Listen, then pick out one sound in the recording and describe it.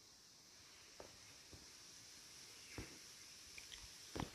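A bow clicks and knocks softly as it is handled and drawn.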